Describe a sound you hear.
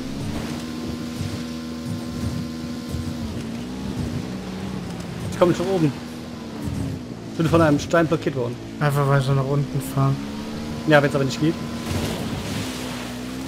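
A motorbike engine drones steadily, its pitch rising and falling as it revs.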